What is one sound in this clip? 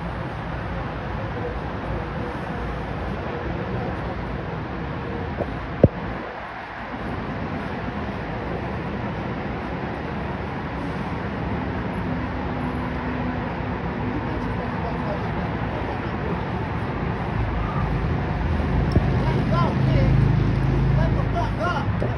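Dogs growl and snarl while fighting.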